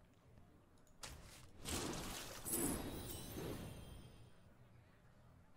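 A card game plays magical whooshing and chiming sound effects.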